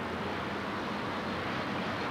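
A large truck engine idles nearby.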